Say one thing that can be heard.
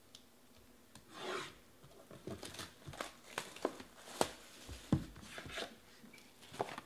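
A knife slices through plastic wrap on a box.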